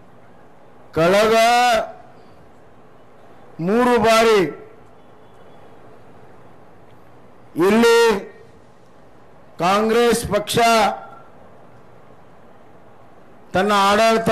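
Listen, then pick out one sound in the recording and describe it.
A man shouts in short bursts through a loudspeaker, with pauses between.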